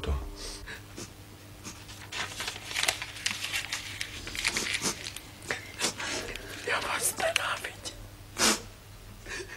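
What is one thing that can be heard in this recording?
A woman speaks softly and tearfully.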